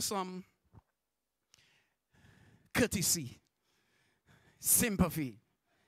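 A man preaches with animation into a microphone through loudspeakers.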